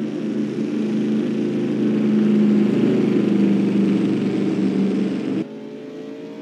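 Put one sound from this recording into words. A race car engine roars loudly and steadily up close.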